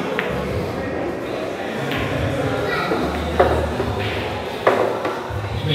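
Billiard balls click sharply against each other on a pool table.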